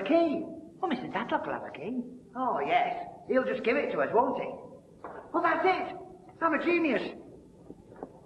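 An older man answers loudly nearby.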